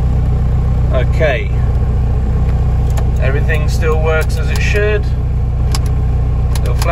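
A car engine hums steadily at idle.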